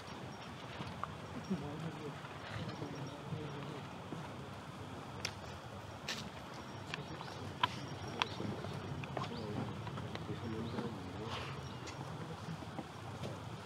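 Several men talk quietly at a distance outdoors.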